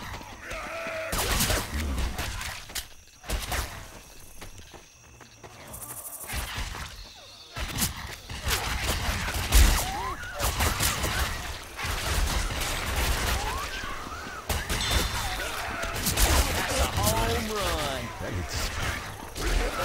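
A pistol fires sharp shots.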